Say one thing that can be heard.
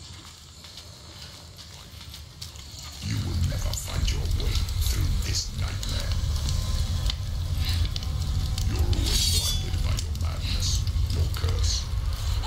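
A torch flame crackles and roars.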